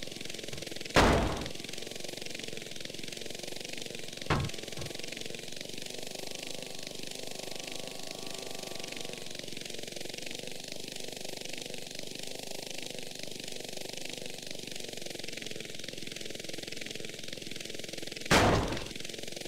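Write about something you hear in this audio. Heavy objects land with loud thuds.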